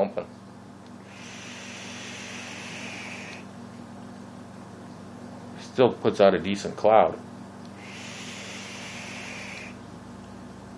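An electronic cigarette sizzles softly as a man draws on it.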